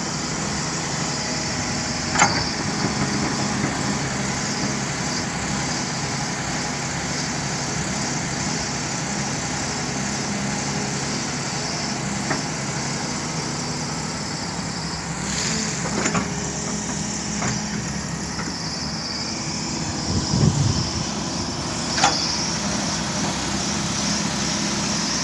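An excavator's diesel engine rumbles steadily close by.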